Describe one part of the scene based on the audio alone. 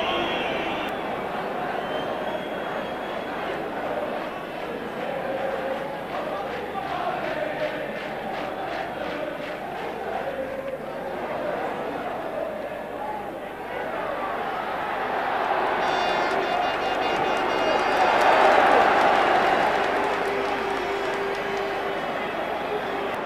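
A large stadium crowd roars and cheers, swelling loudly for a few seconds.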